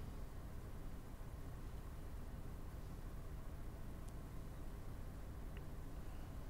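Metal tweezers scrape and tick faintly against a small metal part.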